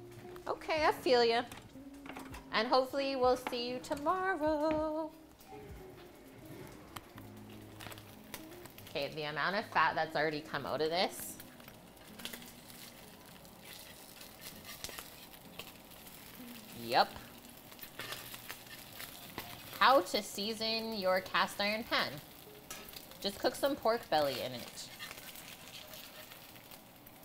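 Bacon sizzles in a pan.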